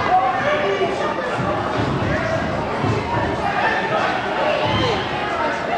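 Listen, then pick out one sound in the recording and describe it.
Bodies thud heavily on a wrestling ring's canvas.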